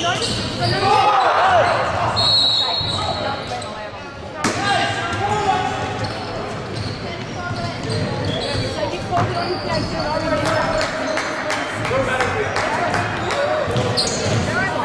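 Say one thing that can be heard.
Men shout and call out to each other across a court.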